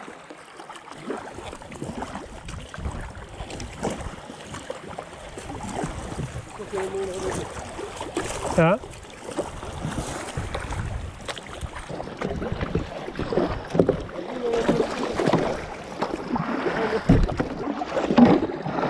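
River water rushes and gurgles over rocks nearby.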